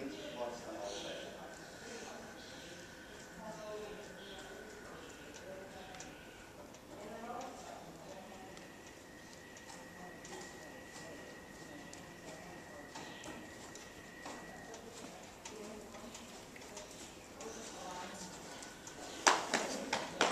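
A horse's hooves thud softly on sand in a large echoing hall.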